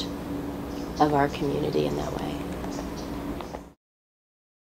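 A woman speaks calmly and warmly, close to a microphone.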